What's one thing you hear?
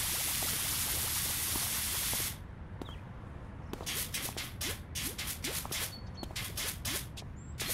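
A pressure washer sprays water in a hissing jet, starting and stopping in short bursts.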